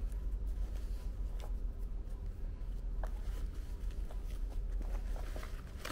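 Shoelaces rustle as they are tugged.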